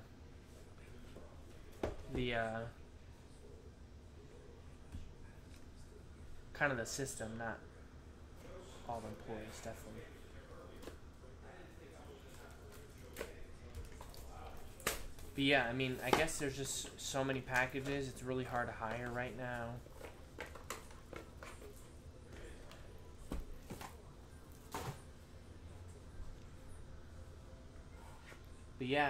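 Cardboard boxes rustle and tap as hands open them.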